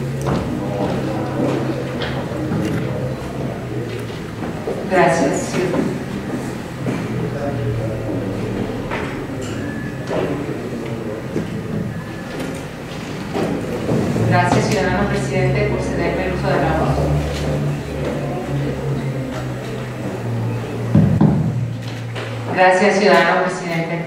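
A woman speaks calmly into a microphone, heard over loudspeakers in an echoing hall.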